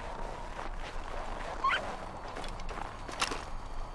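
Footsteps run and crunch through snow.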